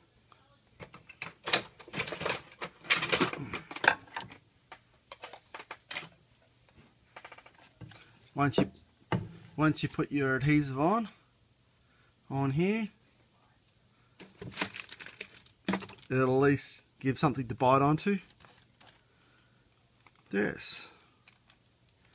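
A flexible rubbery sheet rustles and crinkles as hands handle it.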